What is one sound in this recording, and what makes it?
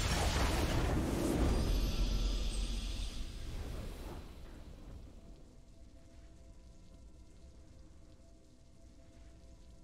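A triumphant victory fanfare swells and then fades.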